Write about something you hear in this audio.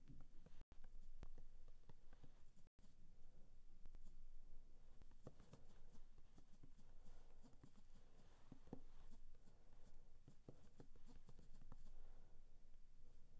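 Fingertips tap quickly on a touchscreen keyboard.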